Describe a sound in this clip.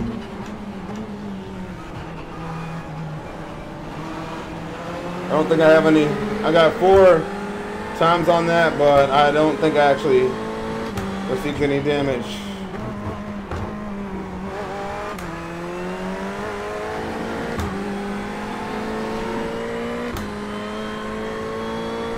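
A racing car engine drones and rises in pitch through gear changes.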